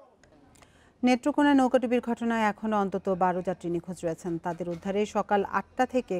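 A young woman reads out calmly and clearly through a microphone.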